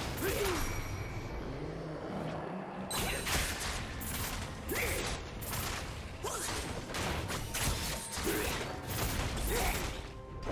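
Magic spells burst and crackle in a video game fight.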